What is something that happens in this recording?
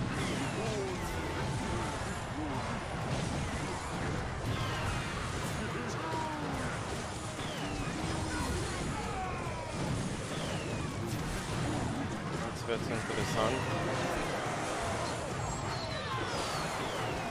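Small explosions boom in a game battle.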